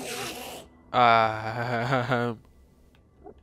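A creature lets out an eerie, wavering warble.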